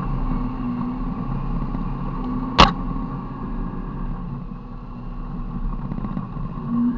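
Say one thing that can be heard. A vehicle's engine rumbles steadily.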